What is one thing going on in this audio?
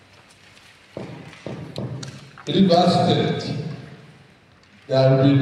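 An elderly man speaks steadily into a microphone.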